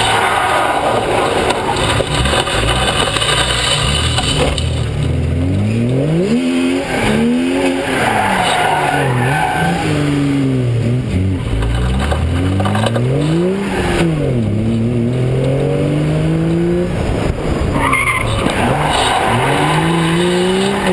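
A car engine revs up and down loudly and close by.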